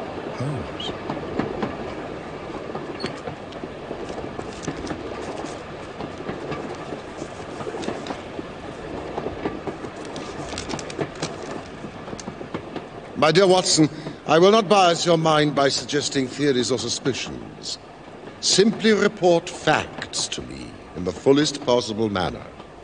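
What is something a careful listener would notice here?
A train carriage rumbles and rattles steadily.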